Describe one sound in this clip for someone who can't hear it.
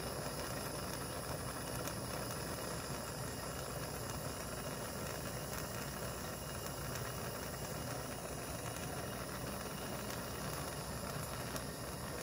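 A gas torch roars steadily up close.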